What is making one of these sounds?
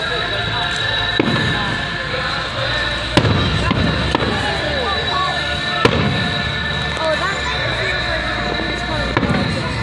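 Fireworks crackle and fizz.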